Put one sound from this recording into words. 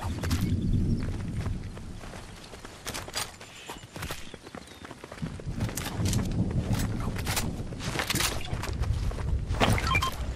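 Footsteps crunch quickly on rocky ground.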